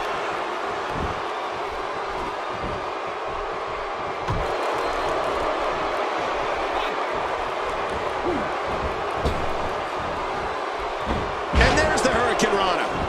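Heavy thuds of bodies slam onto the ring mat.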